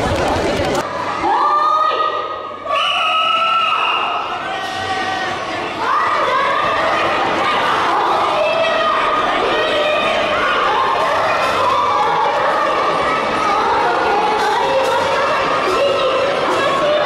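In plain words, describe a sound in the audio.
A crowd cheers and calls out in a large echoing hall.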